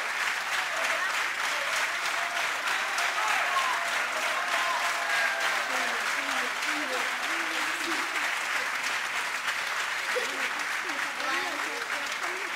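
A choir of men and women calls out and chatters in a large echoing hall.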